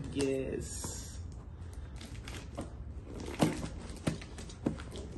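Cardboard rustles and taps under hands.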